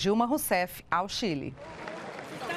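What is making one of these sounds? A woman speaks clearly and calmly into a microphone.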